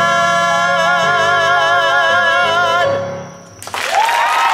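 A young man sings.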